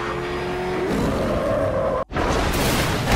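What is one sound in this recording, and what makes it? A powerful vehicle engine roars loudly.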